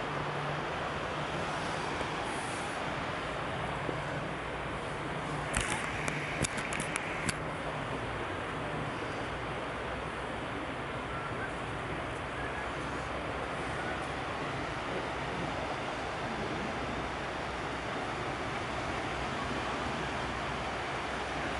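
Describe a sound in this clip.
Wind blows steadily outdoors by the sea.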